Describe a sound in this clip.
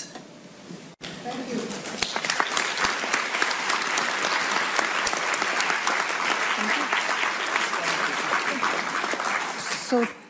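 A large audience applauds in a hall.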